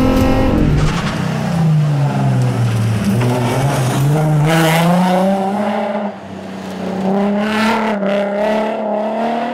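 A rally car engine revs and whines as the car passes by outside.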